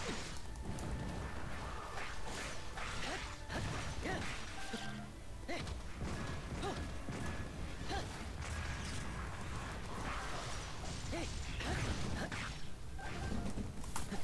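Magic blasts boom and crackle.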